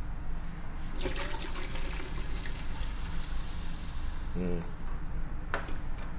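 Liquid pours and splashes into a metal pot.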